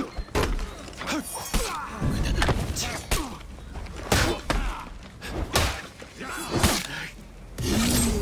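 Steel blades clash and strike in quick blows.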